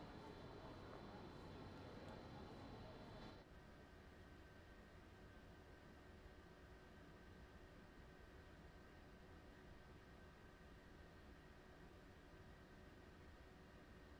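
An electric train hums steadily while standing still.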